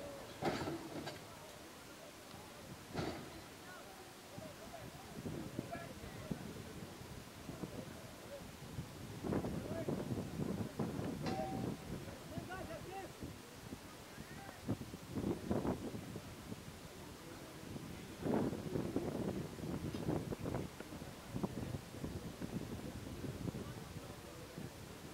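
A crowd of people talks and calls out outdoors.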